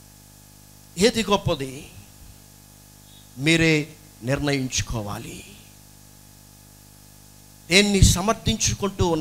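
A young man speaks with emphasis into a microphone, heard through loudspeakers, with pauses between phrases.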